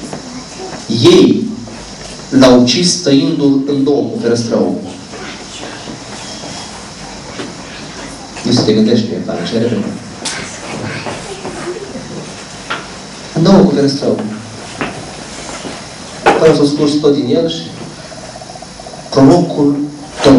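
A man speaks with animation into a microphone, heard through loudspeakers in a room with some echo.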